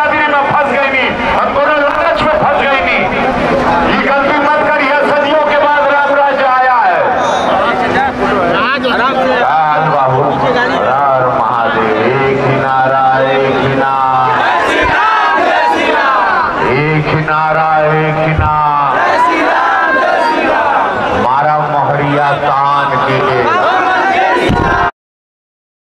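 A man speaks loudly into a handheld microphone outdoors.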